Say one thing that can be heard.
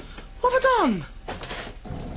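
A woman speaks sharply, close by.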